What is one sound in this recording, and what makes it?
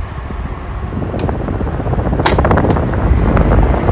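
A fan's switch clicks under a finger.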